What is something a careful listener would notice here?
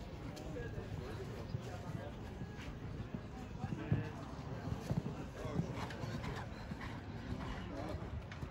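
A horse's hooves thud on soft sand.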